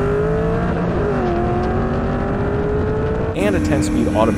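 A sports car engine idles and revs up and down close by.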